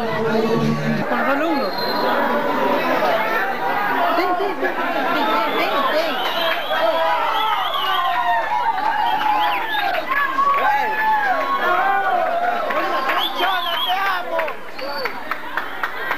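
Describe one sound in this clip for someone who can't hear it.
A crowd talks and shouts all around.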